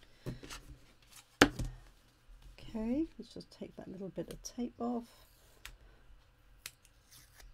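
Stiff plastic sheets tap and rustle as hands handle them.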